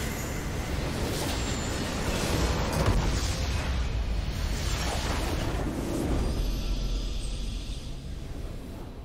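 Spell blasts and explosions crash and boom in a game battle.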